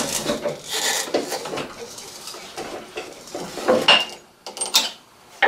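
Metal parts clink and knock as a machine is handled.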